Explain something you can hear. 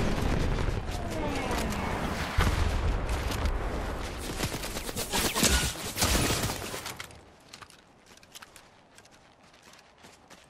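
Footsteps crunch quickly on snow.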